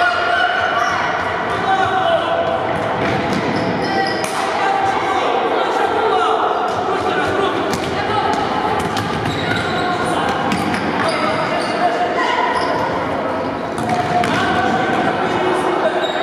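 Sneakers squeak on the hard floor.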